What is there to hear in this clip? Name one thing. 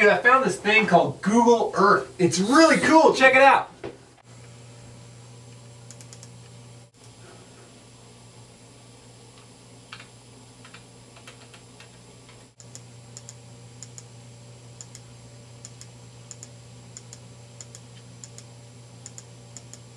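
Computer keys click softly under typing fingers.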